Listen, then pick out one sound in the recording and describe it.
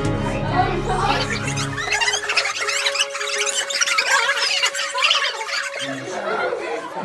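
Children shriek and laugh excitedly nearby.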